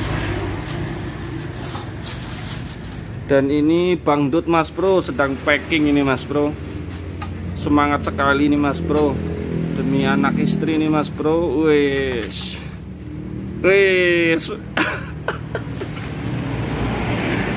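Cardboard and plastic wrapping rustle as a box is unpacked.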